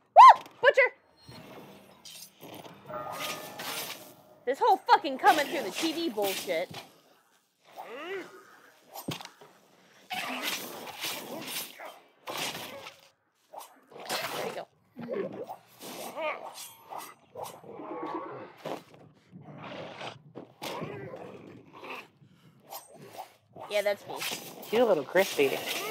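A blade slashes and thuds into flesh.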